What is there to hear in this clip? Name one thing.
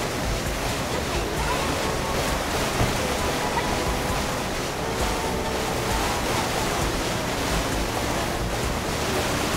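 Water splashes and sprays against a jet ski.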